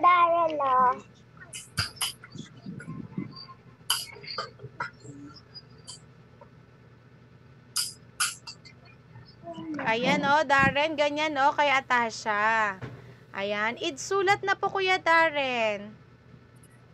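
A woman speaks in a lively, sing-song voice over an online call.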